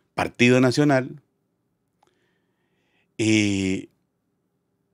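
A middle-aged man speaks emphatically into a close microphone.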